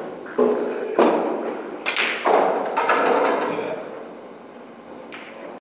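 Billiard balls clack against each other and roll across the table.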